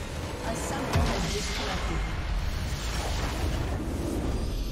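A triumphant fanfare swells as a victory is announced.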